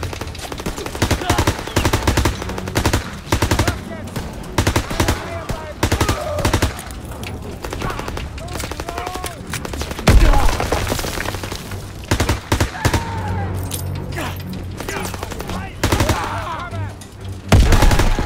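A submachine gun fires in rapid bursts.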